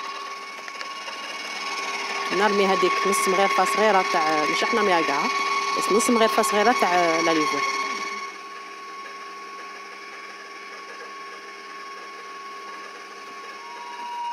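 An electric stand mixer whirs steadily.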